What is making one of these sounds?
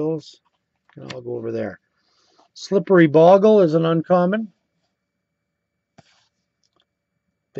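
Playing cards rustle softly as they are handled.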